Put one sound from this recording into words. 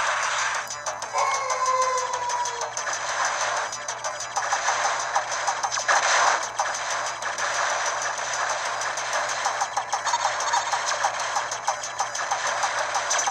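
Rapid electronic shots and explosions crackle throughout.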